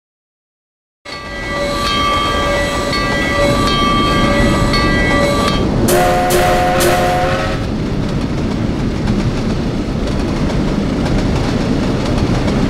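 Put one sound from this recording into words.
A steam locomotive chugs and rumbles along the track.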